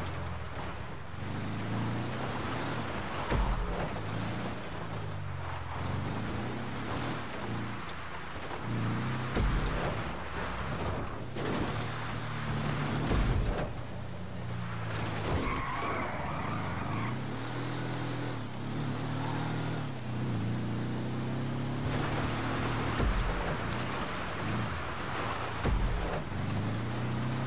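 An off-road buggy engine revs up and down as the buggy drives.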